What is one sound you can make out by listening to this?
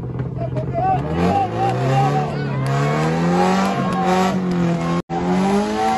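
A rally car engine roars and revs as the car drives past on gravel.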